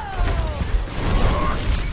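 An energy blast bursts with a loud roar.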